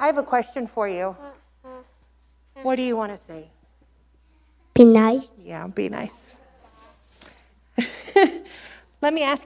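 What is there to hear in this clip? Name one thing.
A woman speaks gently into a microphone in an echoing room.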